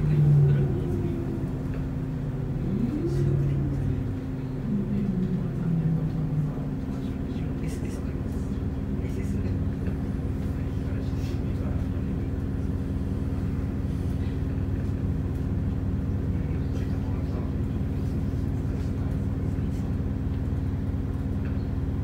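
A car engine hums steadily from inside the moving car.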